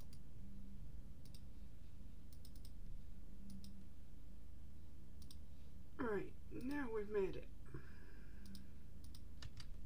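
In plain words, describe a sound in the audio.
Soft clicks sound as items are moved in a game menu.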